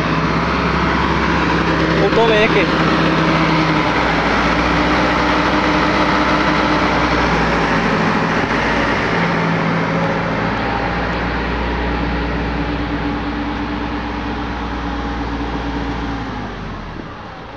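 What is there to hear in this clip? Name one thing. A truck engine rumbles steadily close by.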